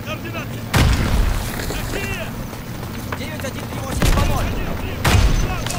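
A man speaks urgently into a field radio handset.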